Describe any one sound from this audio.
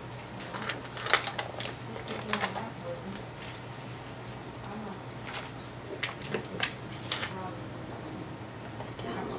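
A paper trimmer blade slides and clicks along its rail.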